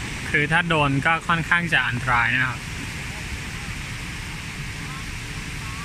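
Small waves wash onto a beach.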